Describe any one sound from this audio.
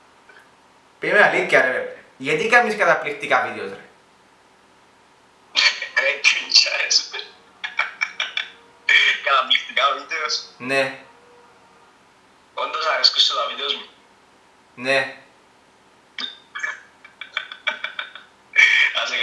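A young man laughs over an online call.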